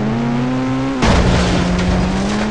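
A vehicle lands hard with a thud.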